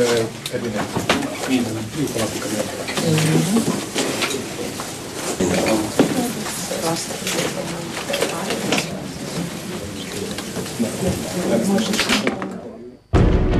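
A crowd of people chatters in a room.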